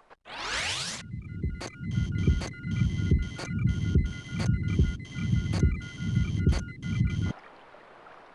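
Electronic music plays with a fast thumping beat.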